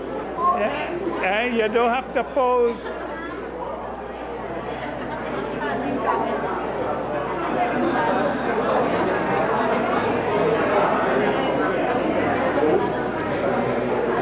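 Many people chatter and murmur in the background.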